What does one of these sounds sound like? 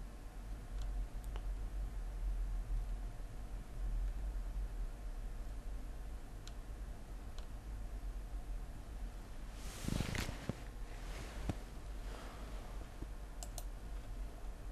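A middle-aged man speaks calmly and close into a microphone.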